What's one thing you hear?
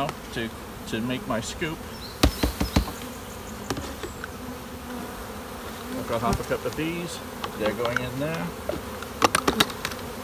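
Bees buzz around close by.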